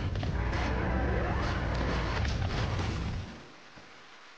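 Heavy blows thud and crash in a rapid scuffle.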